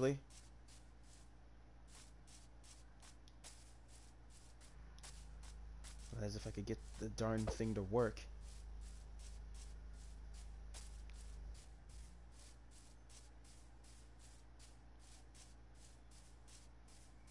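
Footsteps tread steadily on grass.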